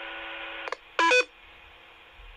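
A handheld radio gives a short electronic beep.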